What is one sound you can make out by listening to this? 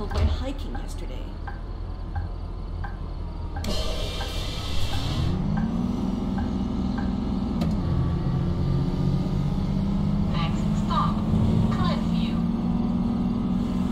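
A bus engine rumbles low and rises in pitch as it speeds up.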